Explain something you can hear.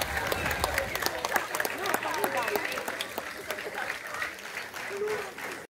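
A crowd of young children chatter and call out close by, outdoors.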